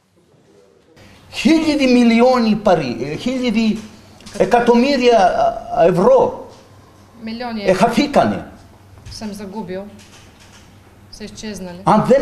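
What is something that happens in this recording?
A middle-aged man speaks loudly and with animation close to a microphone.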